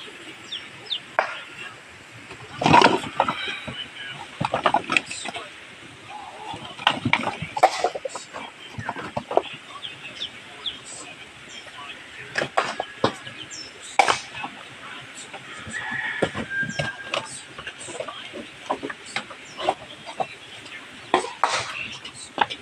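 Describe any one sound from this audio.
Dry coconut shells rustle and scrape as a man sorts through them.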